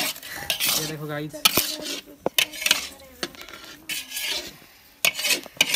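A spatula scrapes against a metal wok.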